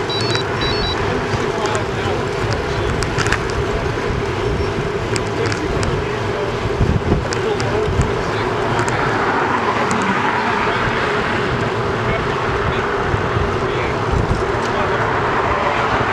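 Bicycle tyres hum on smooth pavement.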